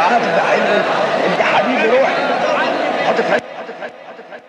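A man chants in a long, drawn-out voice with a heavy echo.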